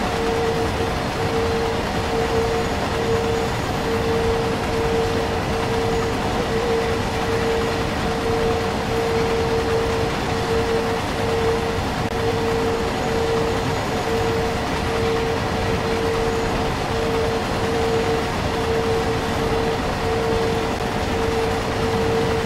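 A freight train rumbles steadily along the rails.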